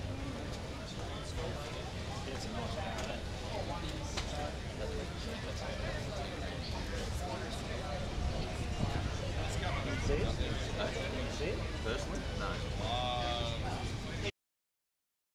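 A crowd of people chatters outdoors in the background.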